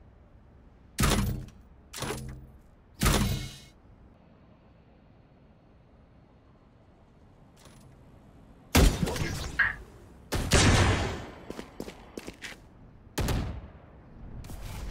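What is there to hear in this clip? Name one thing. Loud gunshots ring out in short bursts.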